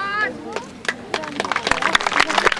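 Horse hooves clop.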